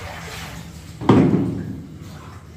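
A plastic tub bumps down onto a tile floor.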